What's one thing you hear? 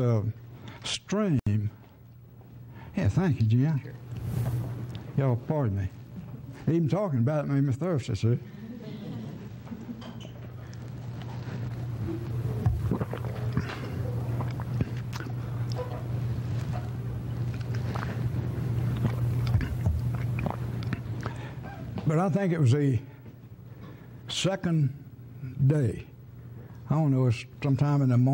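An elderly man speaks to an audience through a microphone.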